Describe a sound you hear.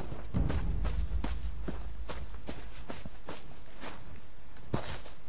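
Footsteps tread steadily over soft ground.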